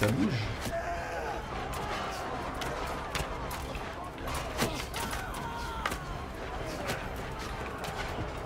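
Soldiers in a battle shout and clash their weapons.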